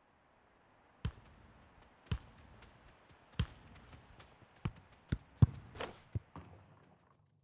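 A football is kicked with sharp thumps.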